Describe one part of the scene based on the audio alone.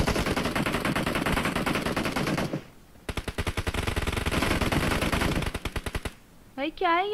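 Rapid gunfire rattles in bursts from a video game.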